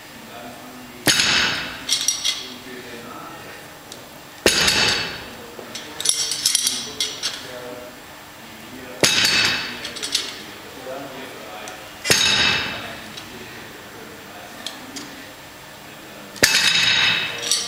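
Heavy metal weight plates clank and rattle as they are lifted and set down again and again.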